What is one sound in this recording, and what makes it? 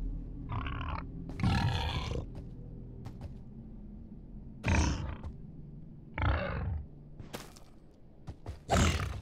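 A beast grunts and snorts nearby.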